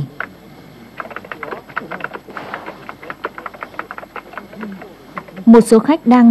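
Keys clatter quickly on a laptop keyboard.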